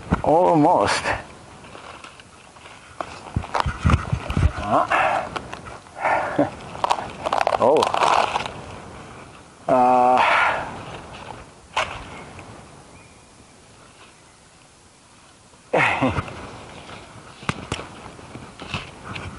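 Dry branches and pine needles rustle and crackle close by.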